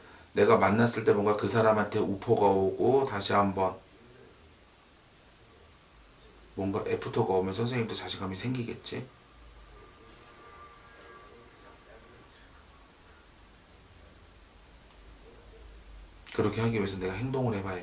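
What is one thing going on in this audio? A young man speaks calmly and close to a microphone, with pauses.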